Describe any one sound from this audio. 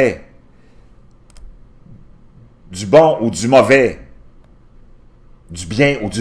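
A middle-aged man speaks calmly and closely into a microphone, in short bursts.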